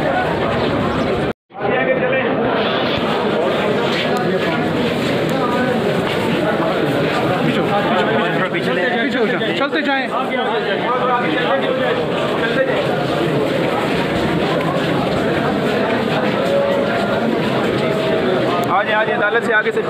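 A crowd of men talk and shout over one another close by.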